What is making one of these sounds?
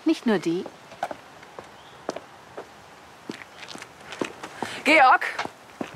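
Footsteps click on pavement.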